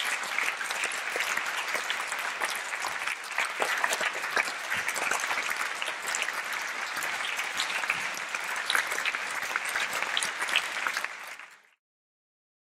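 An audience applauds in an echoing hall and the clapping fades out.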